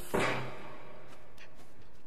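Small footsteps patter across wooden boards.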